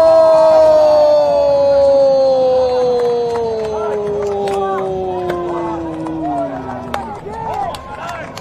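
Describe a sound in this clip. A large stadium crowd cheers and roars.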